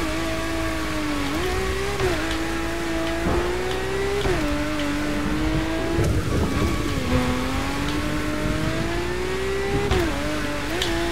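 A sports car engine roars steadily, its pitch climbing and dropping sharply at each gear change.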